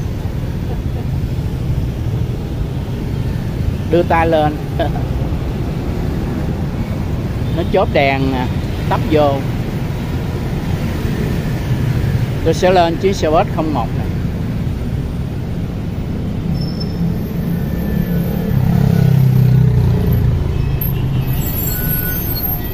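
Motorbikes and cars drive past on a busy street with a steady rumble.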